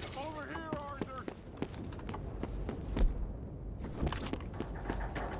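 Boots thud quickly on wooden planks.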